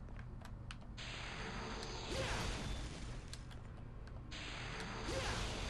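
A magical blast bursts with a roaring whoosh.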